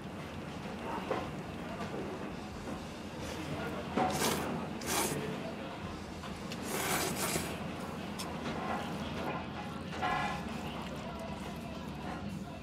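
A fork and chopsticks scrape against a metal bowl.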